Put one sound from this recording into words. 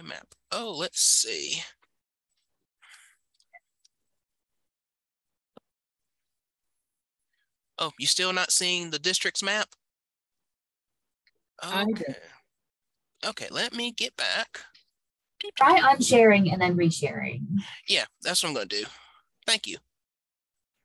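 A woman speaks calmly over an online call, in bursts with pauses.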